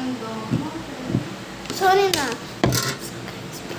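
Hands tap and thump on a table close by.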